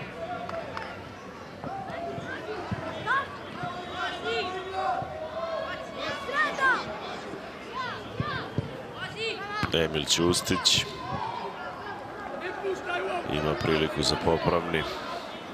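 Young players shout and call out to each other across an open outdoor pitch.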